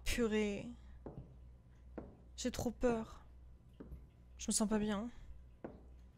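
A young woman speaks in short, animated bursts close to a microphone.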